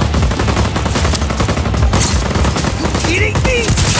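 Rapid gunshots fire nearby.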